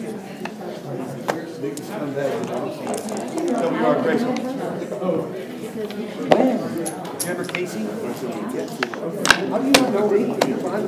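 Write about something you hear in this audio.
Plastic checkers click as they are moved on a wooden board.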